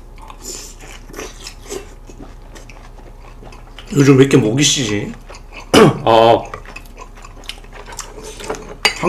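A man chews food noisily close to a microphone.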